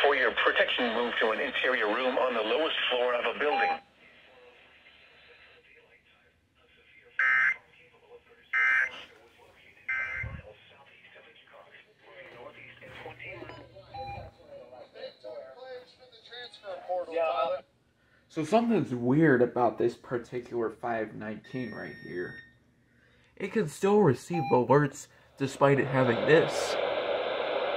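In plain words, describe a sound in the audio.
A man's voice speaks calmly through a small radio loudspeaker.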